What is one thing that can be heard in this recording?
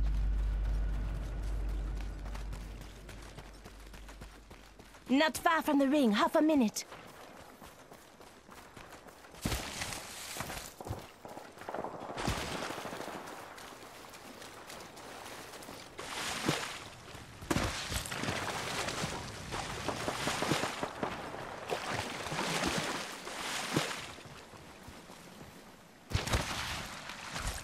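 Footsteps run quickly over dirt and wooden boards.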